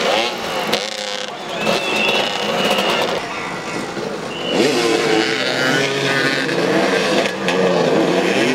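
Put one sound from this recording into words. Several motorcycle engines rev and whine nearby, outdoors.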